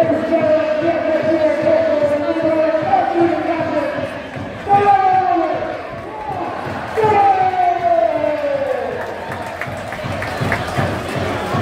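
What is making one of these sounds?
A crowd cheers and shouts across the stadium.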